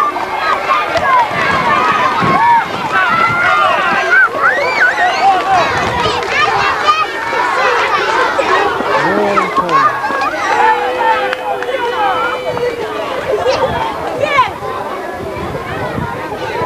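A crowd of spectators cheers and shouts outdoors close by.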